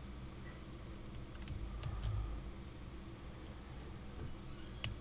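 Short, sharp clicks sound as a shelf snaps into place.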